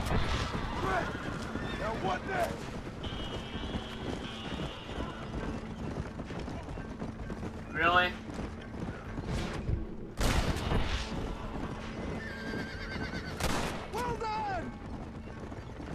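Wooden wagon wheels rumble and rattle over rough ground.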